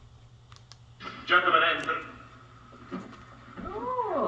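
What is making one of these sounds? A man speaks forcefully, heard through a television speaker in a room.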